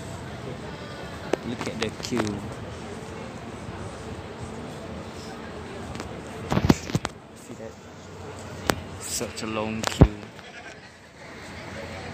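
A young man talks close to a phone microphone.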